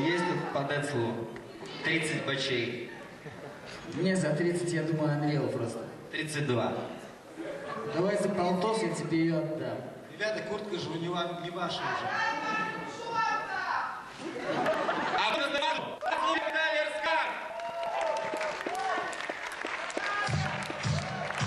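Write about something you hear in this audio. A young man talks with animation through a microphone in a large echoing hall.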